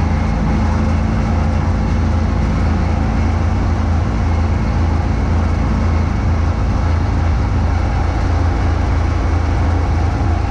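Snow whooshes out of a snowblower chute.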